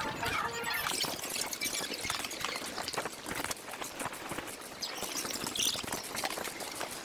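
Footsteps tap on cobblestones outdoors.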